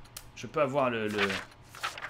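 A paper page flips over quickly.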